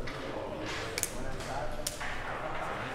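Billiard balls click sharply against each other.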